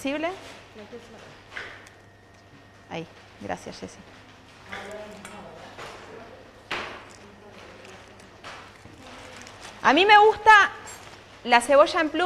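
An older woman speaks calmly nearby.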